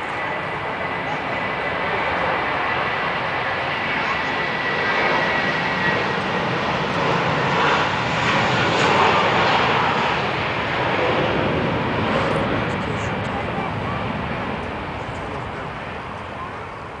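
A vehicle drives along with a steady road rumble from inside.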